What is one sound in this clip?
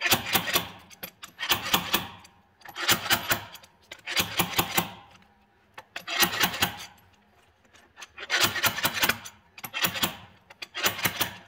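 A ratchet wrench clicks rapidly in short bursts as it turns a bolt.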